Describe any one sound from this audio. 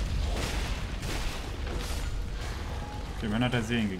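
Swords clang and strike in a fight.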